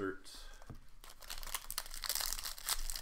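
Cardboard cards slide and rustle against each other.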